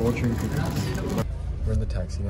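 Plastic candy wrapping crinkles close by.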